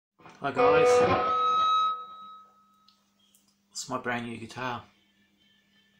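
An electric guitar strums a chord that rings out and fades.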